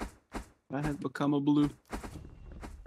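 A young man speaks into a microphone close by.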